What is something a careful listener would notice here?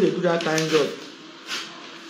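Paper rustles as a hand shuffles through sheets.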